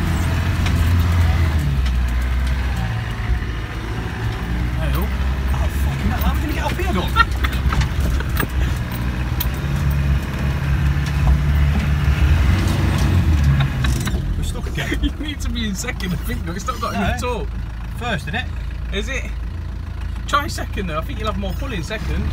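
The cab rattles and knocks as the vehicle bumps over rough ground.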